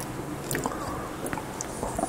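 An older man chews food.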